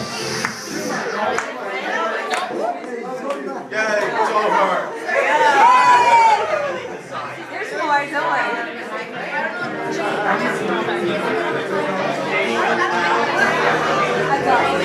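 A crowd of people talks, cheers and laughs loudly nearby.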